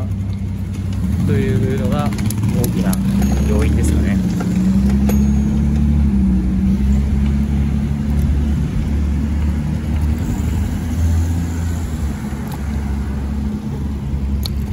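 A motorcycle engine revs up and pulls away, rising and falling in pitch.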